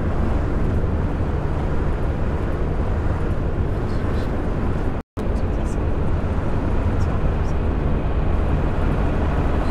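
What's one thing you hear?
A bus engine drones steadily while driving at speed.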